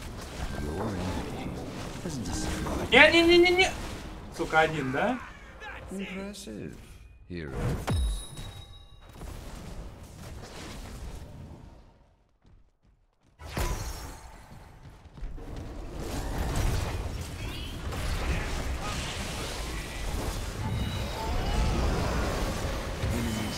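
Magical spells whoosh and crackle during a fight.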